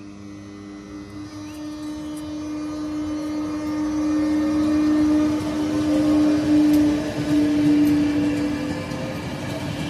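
An electric locomotive hauls a passenger train past, its motors whining.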